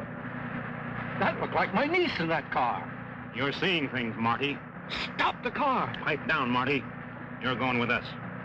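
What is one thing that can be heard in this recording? A younger man answers tensely.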